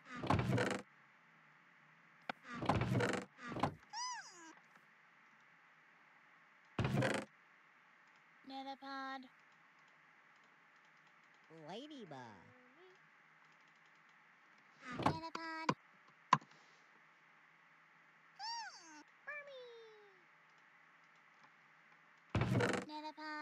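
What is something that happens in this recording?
A wooden chest creaks open and thumps shut several times.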